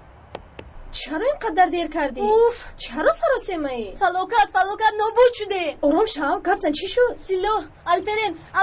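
A teenage girl answers calmly close by.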